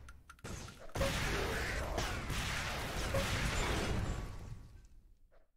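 Explosions boom and crackle from a game.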